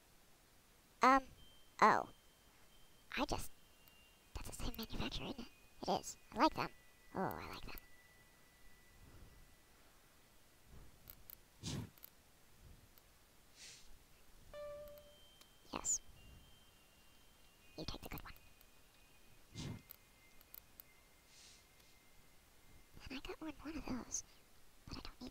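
Short electronic beeps and clicks sound as menu selections change.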